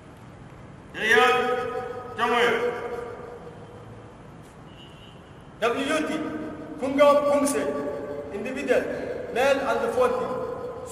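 A man speaks loudly in an echoing hall.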